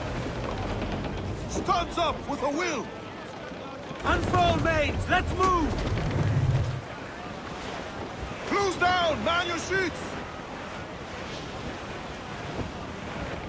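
Waves wash and roll steadily against a sailing ship.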